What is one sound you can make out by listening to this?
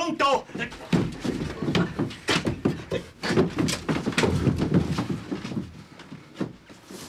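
Two men scuffle and struggle.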